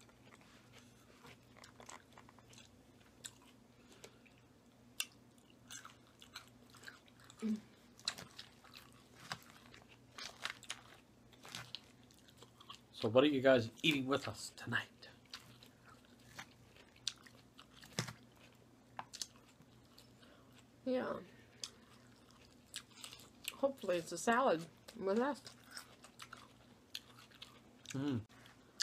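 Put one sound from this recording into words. A man chews and crunches salad close to a microphone.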